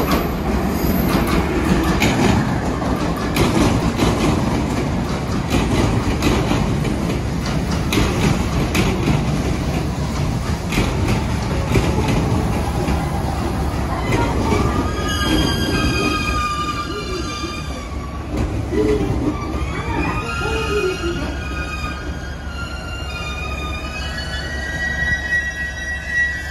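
A train rumbles and clatters loudly past on the tracks.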